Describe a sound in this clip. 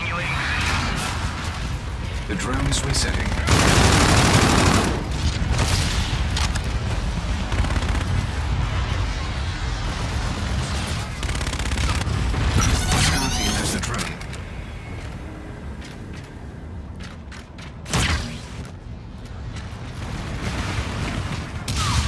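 Heavy footsteps thud as a soldier runs.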